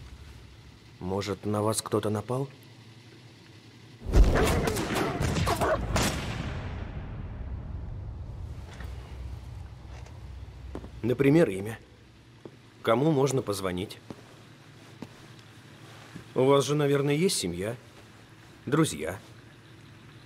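A middle-aged man speaks calmly and questioningly, close by.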